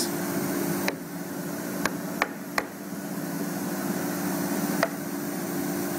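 Wooden panels knock together as they are fitted.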